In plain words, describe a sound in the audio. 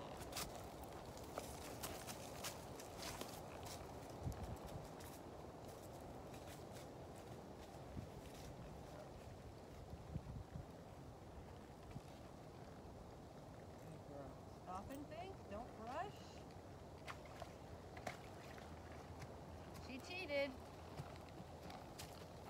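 A horse's hooves thud on soft dirt as it walks past close by.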